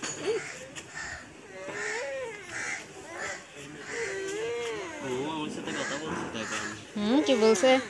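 A young girl talks in a high, sing-song voice close by.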